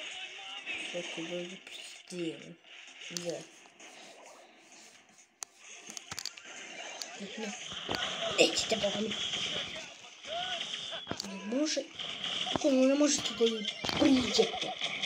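Video game shots and hits crack and pop in quick bursts.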